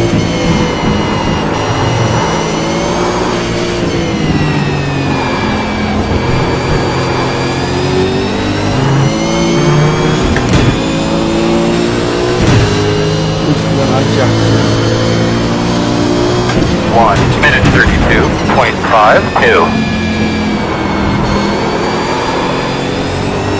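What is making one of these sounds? A racing car engine roars and whines, its pitch rising and falling as it shifts gears.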